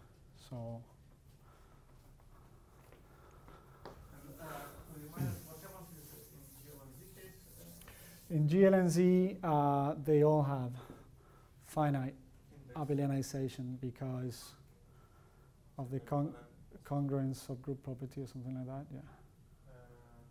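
A young man lectures calmly in an echoing room.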